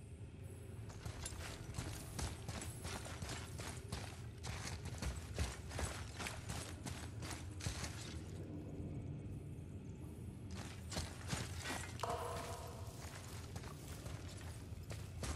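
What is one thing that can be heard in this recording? Heavy footsteps crunch on stone and gravel.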